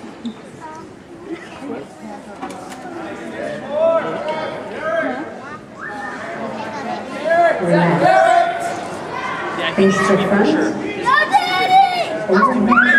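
A crowd of spectators shouts and cheers loudly in a large echoing hall, growing louder over time.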